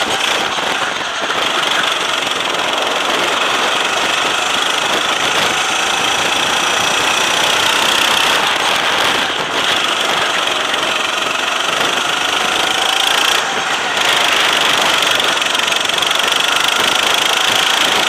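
A go-kart engine buzzes loudly up close, rising and falling in pitch as it speeds up and slows down.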